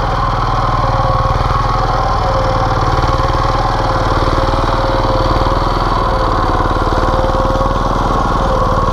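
A small tiller engine chugs loudly and steadily close by.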